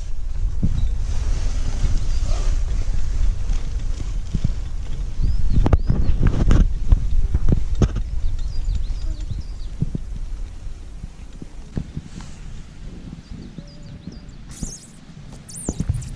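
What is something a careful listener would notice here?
Wind rumbles against the microphone outdoors, strongest at first and slowly easing.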